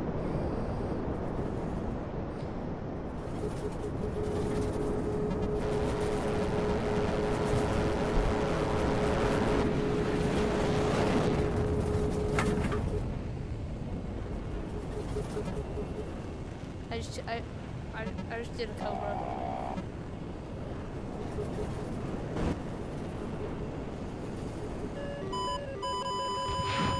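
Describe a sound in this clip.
A jet engine roars steadily, swelling louder for a while and then easing off.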